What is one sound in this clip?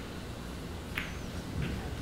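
Balls knock together with a hard clack.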